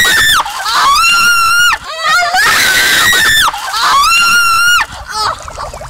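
Young women scream loudly and shrilly.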